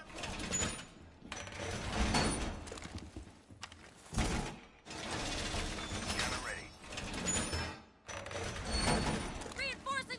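Heavy metal bars clank and scrape into place against a wall.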